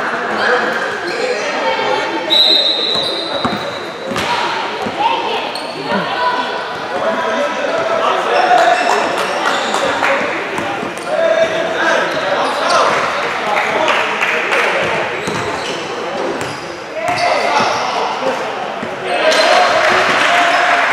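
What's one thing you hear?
Young men talk and call out across an echoing gym.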